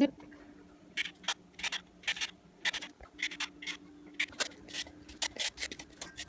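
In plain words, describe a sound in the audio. A carrot scrapes against a grater in quick strokes.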